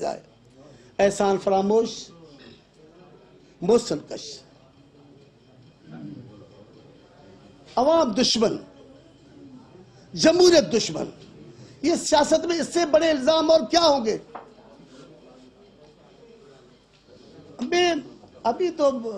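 An older man speaks into microphones in short bursts with pauses, in a calm and firm voice.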